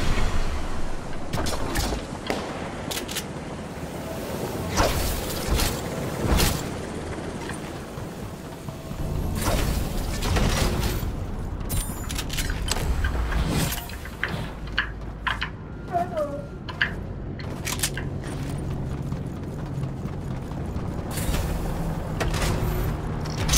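Footsteps of a game character clatter on metal floors.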